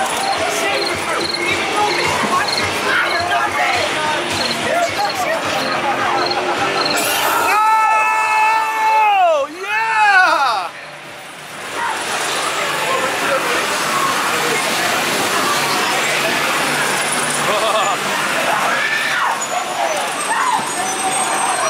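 A crowd of people chatter and shout nearby.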